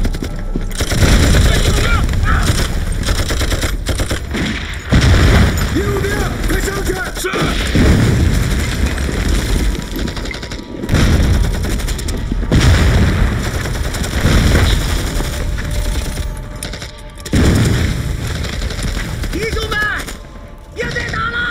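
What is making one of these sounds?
Explosions boom and rumble nearby, again and again.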